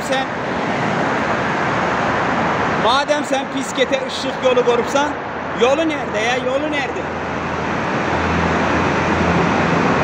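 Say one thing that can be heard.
Traffic noise rumbles steadily through an echoing tunnel.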